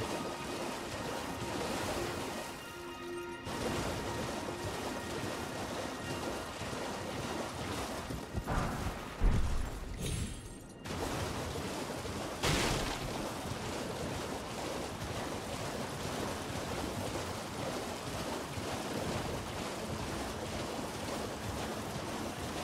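Hooves splash rapidly through shallow water.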